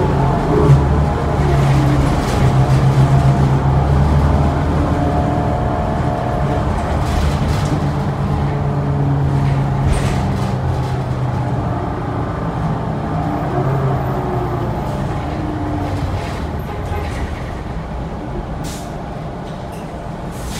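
A bus engine hums and drones steadily while driving, slowly growing quieter.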